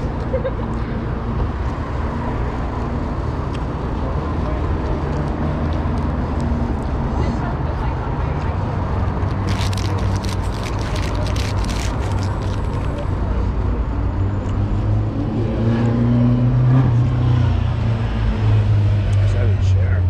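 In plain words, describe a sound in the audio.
Wind buffets the microphone steadily outdoors.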